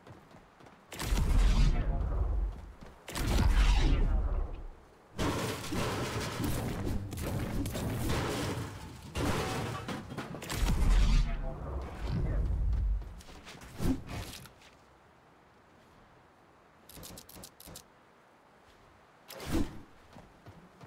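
Video game sound effects crash and whoosh in bursts.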